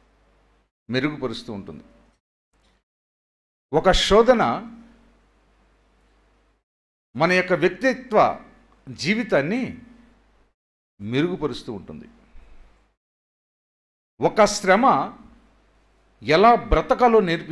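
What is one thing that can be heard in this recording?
A middle-aged man preaches with emphasis into a microphone, in short bursts with pauses.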